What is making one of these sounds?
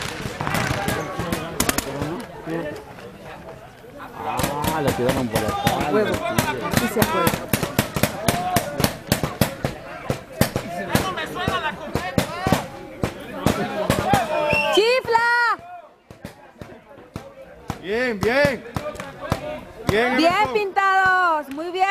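Paintball guns fire in rapid bursts of sharp pops nearby.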